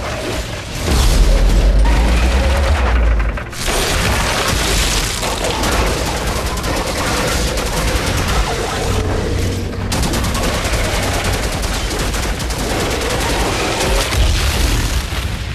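Heavy explosions boom.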